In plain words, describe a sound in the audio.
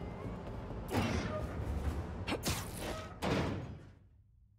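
A metal hatch bangs shut with a loud clang.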